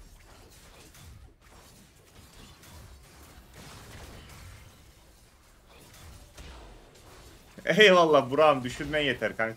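Game battle effects clash and zap.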